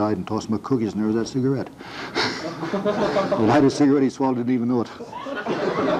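An elderly man speaks with animation to an audience.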